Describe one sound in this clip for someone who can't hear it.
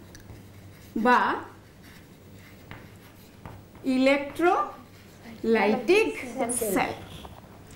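A woman speaks calmly, close to a microphone.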